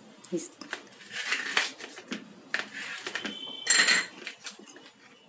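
A knife cuts flatbread and scrapes on a plate.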